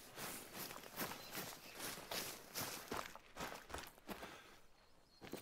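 Footsteps tap along a paved road.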